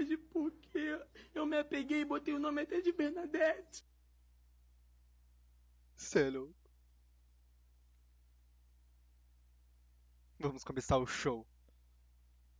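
A young man talks excitedly into a microphone, in short bursts with pauses.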